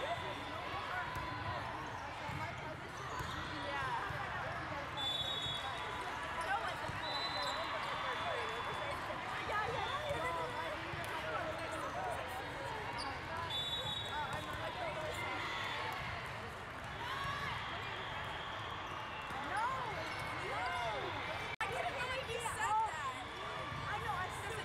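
A crowd chatters and cheers throughout a large echoing hall.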